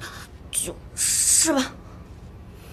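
A young woman whimpers in discomfort.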